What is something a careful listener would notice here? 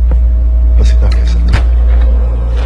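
A door handle clicks as it turns.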